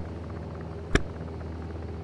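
A glovebox lid clunks open.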